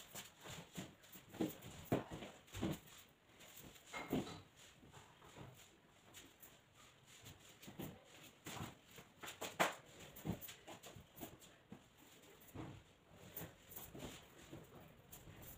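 A blanket rustles and flaps as it is spread out.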